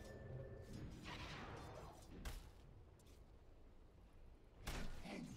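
Magical spell effects whoosh and crackle in a video game.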